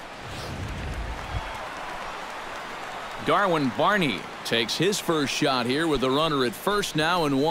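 A large crowd murmurs in a stadium.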